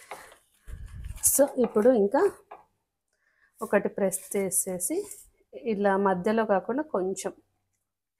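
A plastic sheet crinkles and rustles.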